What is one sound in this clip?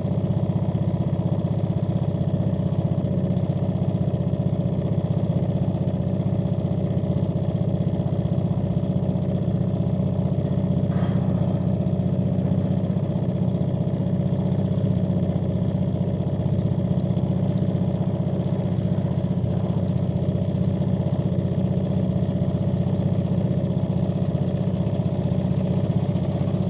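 Water laps and splashes gently against a ship's hull.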